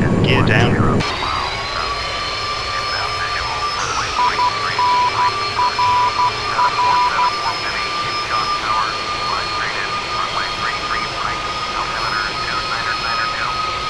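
A jet engine whines with a high, steady hum.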